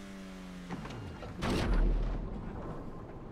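A car splashes heavily into water.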